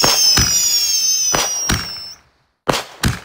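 Fireworks whistle as they shoot upward.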